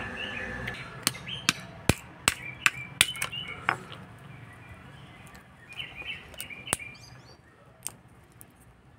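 Walnut shells crack and crunch between fingers.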